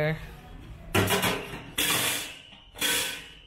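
A metal rack clanks against a metal frame.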